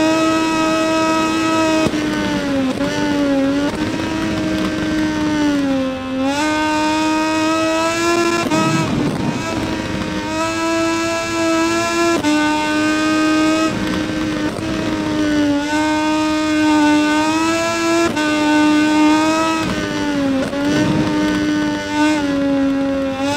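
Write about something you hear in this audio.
A motorcycle engine screams at high revs, rising and falling as it shifts gears and slows for corners.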